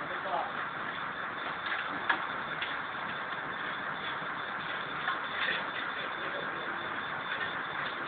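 Water sprays hard from a fire hose against a wall.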